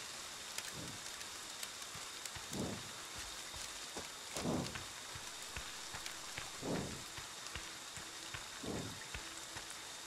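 Footsteps thud slowly and evenly on soft ground.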